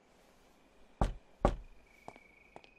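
Knuckles knock on a wooden door.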